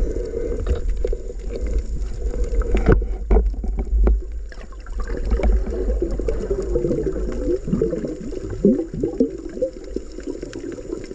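A low, muffled underwater rumble goes on throughout.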